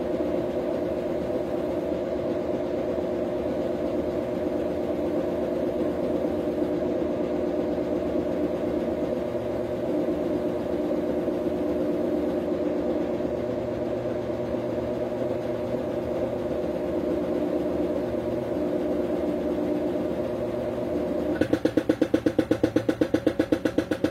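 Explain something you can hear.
A washing machine drum spins with a steady whirring hum.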